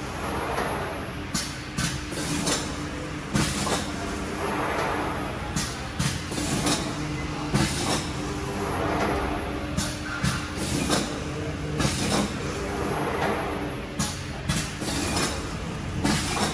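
Compressed air hisses in short bursts.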